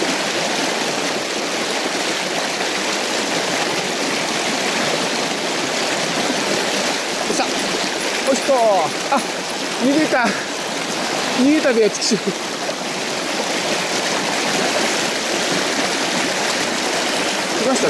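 A fast river rushes and splashes loudly close by.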